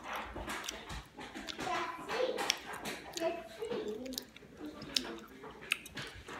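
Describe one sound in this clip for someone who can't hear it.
A young woman chews and smacks her lips.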